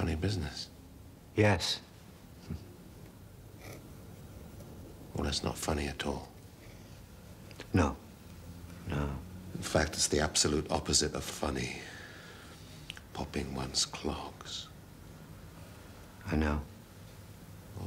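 A middle-aged man answers briefly and quietly, close by.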